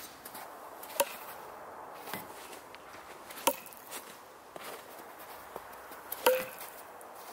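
A thrown knife thuds sharply into a tree trunk.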